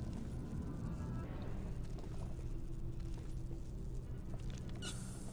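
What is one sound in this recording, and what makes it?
A deep spaceship rumble drones steadily.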